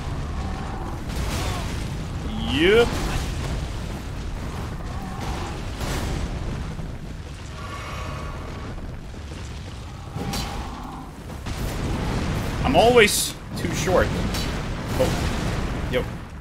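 Heavy blows and crashes of a fierce fight ring out.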